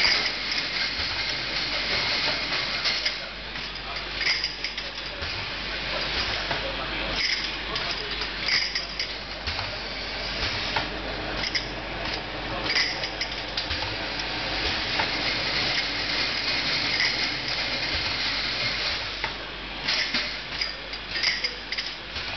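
A filling machine hums and hisses steadily.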